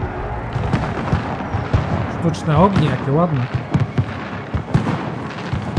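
Fireworks pop and crackle in the distance.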